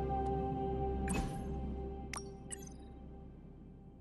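A soft electronic chime sounds.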